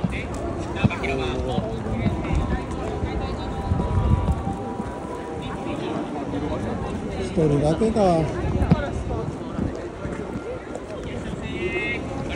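Adults chat nearby, men and women.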